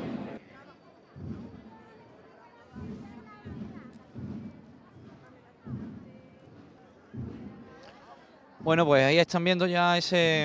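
A crowd murmurs nearby outdoors.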